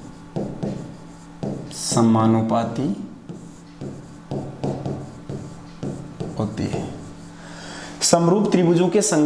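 A man speaks steadily and clearly into a close microphone.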